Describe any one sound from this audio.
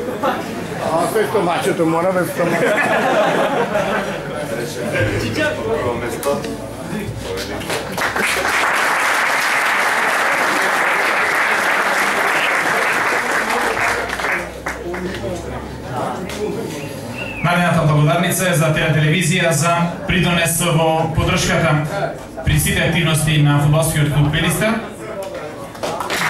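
A man speaks with animation through a microphone in an echoing room.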